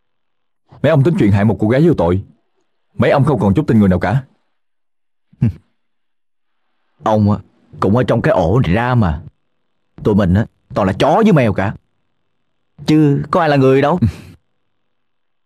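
A young man speaks intently, close by.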